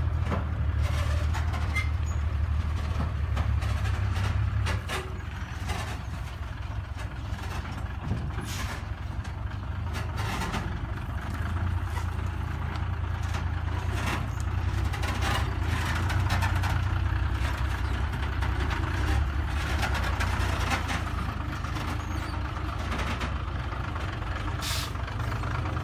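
A truck's diesel engine rumbles loudly as it reverses nearby.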